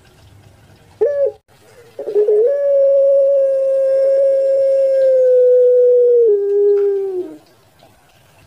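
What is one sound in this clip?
A dove calls close by with a long, drawn-out, steady note that drops in pitch at the end.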